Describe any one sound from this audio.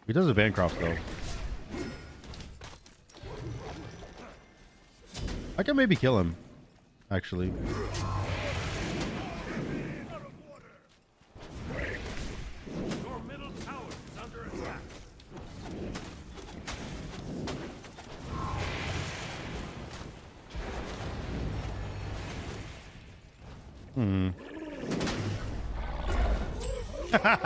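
Game effects whoosh and clash during combat.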